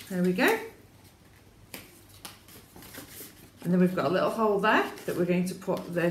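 Paper rustles as it is unfolded.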